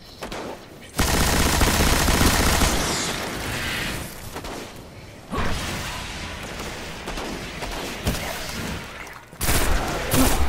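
Guns fire in loud bursts.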